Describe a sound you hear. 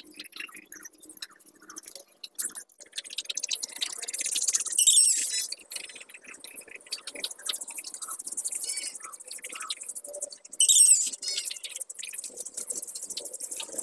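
A paintbrush swishes and scrapes across wooden boards.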